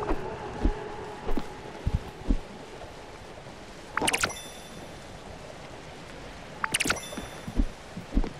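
Light footsteps tap on a wooden floor.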